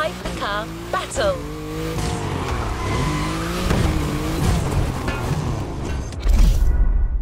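A sports car engine revs loudly and changes pitch.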